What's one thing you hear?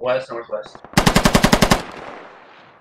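A machine gun fires a rapid burst that echoes away.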